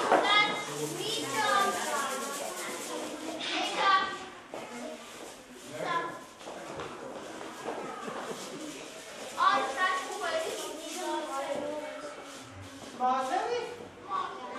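Young children sing together close by.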